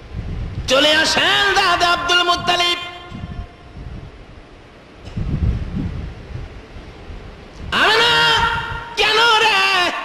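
A man chants loudly in long, drawn-out tones through a loudspeaker, with pauses in between.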